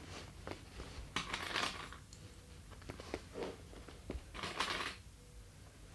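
Plastic clips clatter in a small box.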